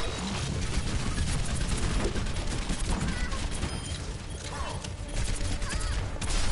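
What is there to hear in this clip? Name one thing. Rapid gunfire crackles from a game weapon.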